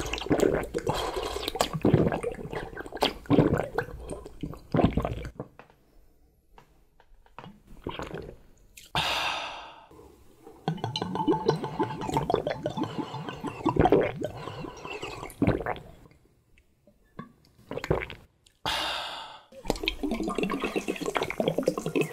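A young man gulps down a drink in loud swallows.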